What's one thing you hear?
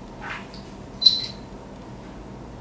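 Small metal parts clink as a hand picks them up.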